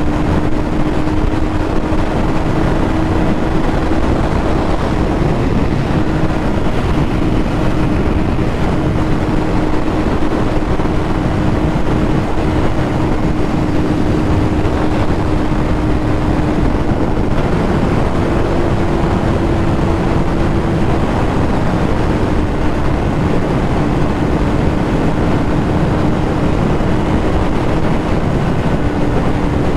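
A motorcycle engine hums steadily at highway speed.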